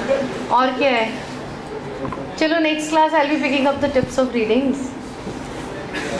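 A middle-aged woman laughs.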